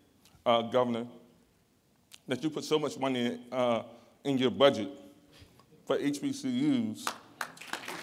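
A man speaks clearly and with emphasis, pausing between phrases.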